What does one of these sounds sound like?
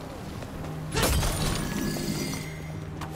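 A sudden blast of a magical attack bursts out.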